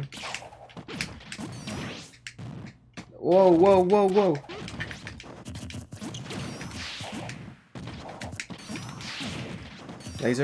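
Video game fighting sounds thump and whoosh with quick hits.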